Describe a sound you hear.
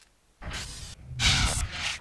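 A knife swishes through the air.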